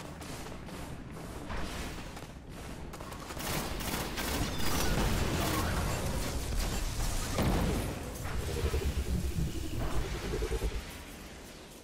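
Gunfire and explosions boom and crackle in a video game.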